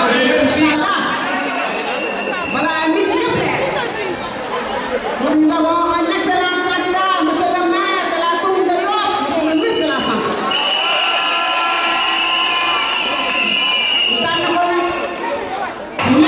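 A woman speaks with animation into microphones through a loudspeaker.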